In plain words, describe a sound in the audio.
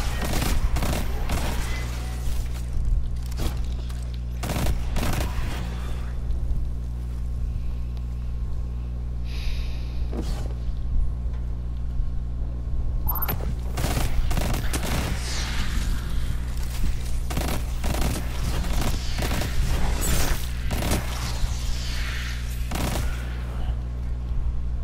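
Gunfire bursts in rapid loud shots.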